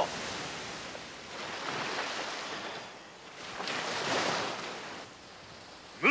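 An oar splashes through water.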